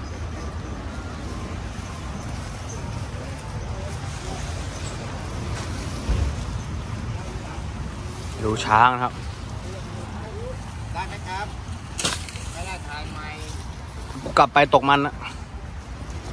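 An elephant rustles and munches dry grass.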